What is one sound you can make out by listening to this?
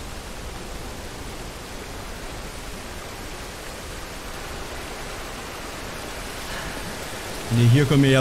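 Water rushes and splashes down a rocky drop.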